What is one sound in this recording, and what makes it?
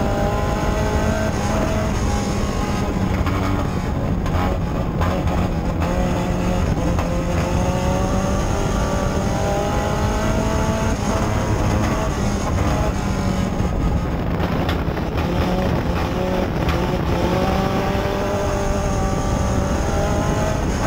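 A race car engine roars loudly, rising and falling in pitch as the car speeds around a dirt track.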